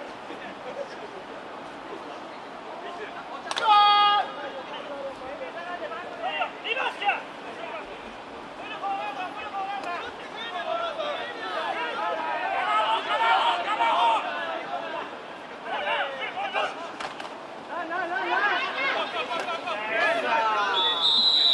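Players shout and call out across an open field.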